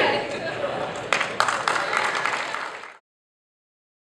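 A crowd claps its hands.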